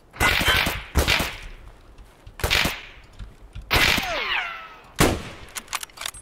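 Rifle shots ring out loudly with echoes.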